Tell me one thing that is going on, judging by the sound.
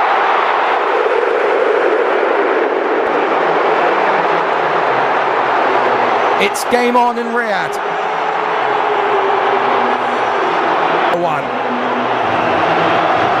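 A large stadium crowd roars loudly and steadily.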